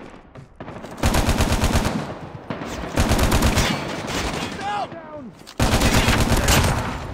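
A rifle fires in rapid bursts.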